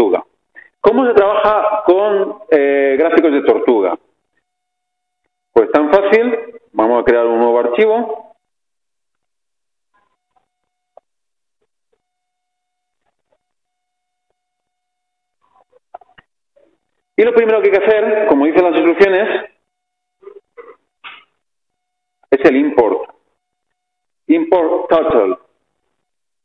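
A man lectures through a microphone, speaking calmly in bursts with pauses.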